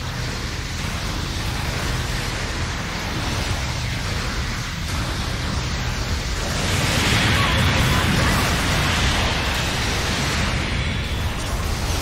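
A robot's thrusters roar steadily.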